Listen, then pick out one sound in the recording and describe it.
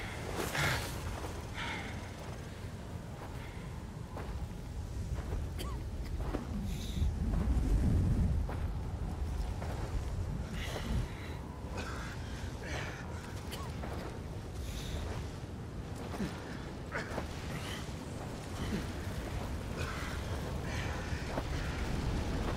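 Wind howls and blows sand in a storm.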